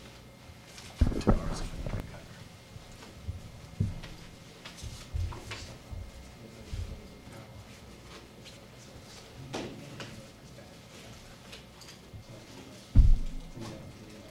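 Thumps and knocks sound on a microphone.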